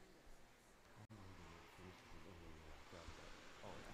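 Two men talk quietly with each other nearby.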